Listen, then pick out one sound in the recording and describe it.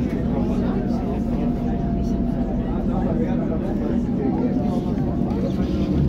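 Train brakes squeal faintly as the train slows down.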